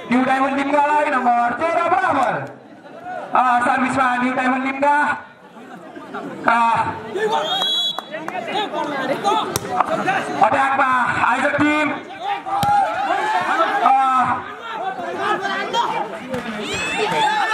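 A man shouts commentary through a loudspeaker, echoing outdoors.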